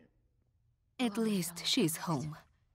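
A middle-aged woman speaks close by.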